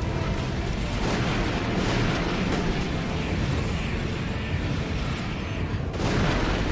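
Jet thrusters roar loudly and steadily.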